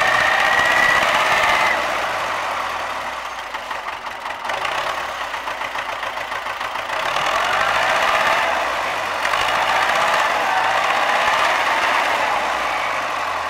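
A tractor engine runs and labours nearby.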